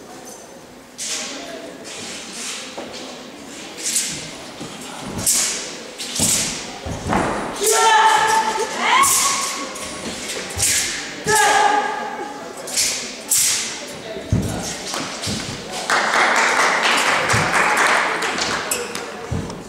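A weapon whooshes through the air in quick, repeated swings.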